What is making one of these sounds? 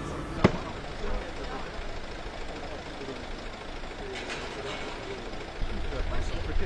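Men talk in low voices nearby outdoors.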